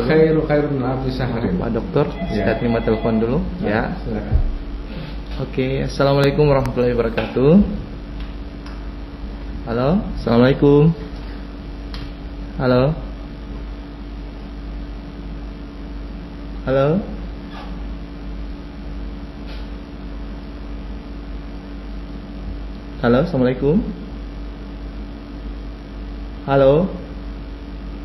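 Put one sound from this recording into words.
An elderly man speaks calmly into a close microphone, pausing often.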